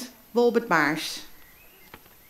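A woman speaks calmly through a microphone over loudspeakers.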